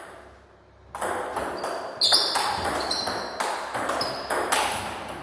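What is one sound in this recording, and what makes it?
A ping-pong ball clicks back and forth off paddles and the table in a large echoing hall.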